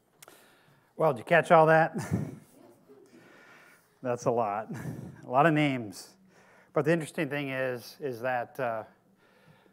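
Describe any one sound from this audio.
A middle-aged man reads aloud calmly into a microphone.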